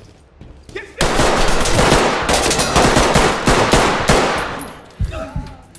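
A gun fires a long, rapid burst of loud shots.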